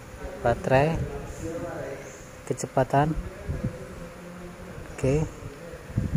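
A plastic switch clicks as a finger presses it.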